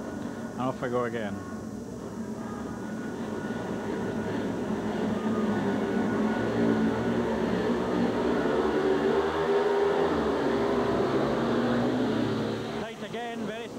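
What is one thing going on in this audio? Motorcycle engines roar loudly as the bikes race off.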